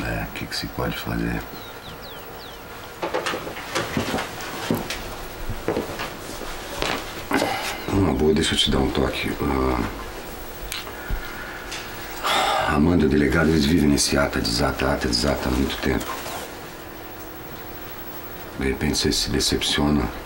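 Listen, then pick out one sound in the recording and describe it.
A man speaks calmly and quietly up close.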